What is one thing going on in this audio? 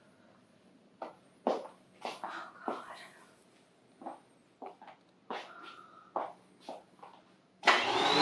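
Footsteps thud quickly across the floor.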